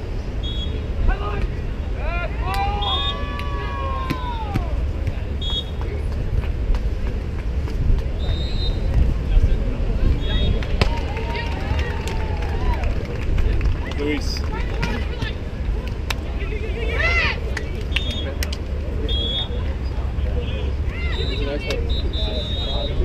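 Men call out to each other across the court.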